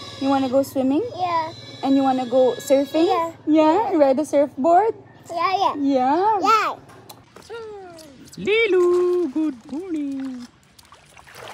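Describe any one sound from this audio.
A young woman talks warmly and playfully up close.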